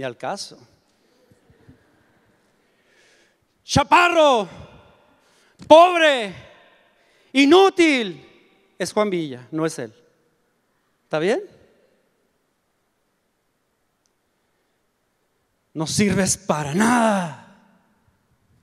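An older man calls out loudly in short bursts through a microphone in a large hall.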